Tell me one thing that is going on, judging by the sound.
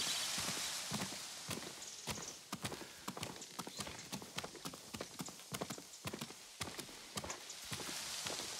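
Footsteps climb stone steps at a steady pace.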